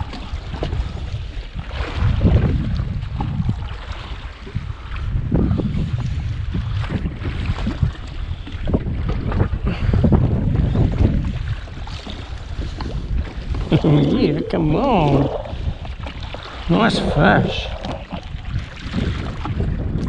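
Water laps and splashes against a small boat's hull.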